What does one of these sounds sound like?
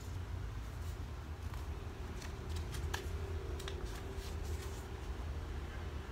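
Paper cards rustle in a young man's hands.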